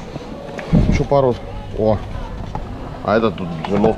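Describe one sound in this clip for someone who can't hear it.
A cardboard box scrapes and rustles as it is lifted off a shelf.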